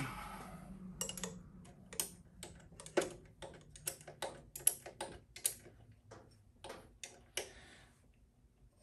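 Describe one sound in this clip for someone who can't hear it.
Metal tools click and clink against a motorbike engine.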